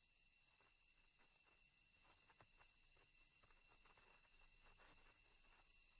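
Loose soil scrapes and patters softly as a scorpion digs.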